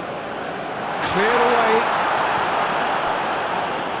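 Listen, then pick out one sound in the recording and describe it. A crowd roars loudly for a moment.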